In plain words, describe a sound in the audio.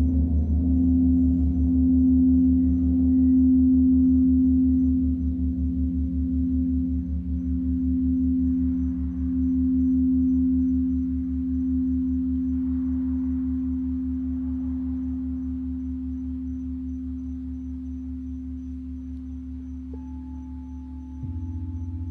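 A crystal singing bowl hums with a steady, swelling low tone.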